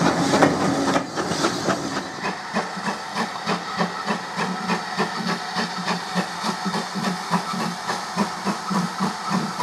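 A steam locomotive chuffs in a steady rhythm in the distance.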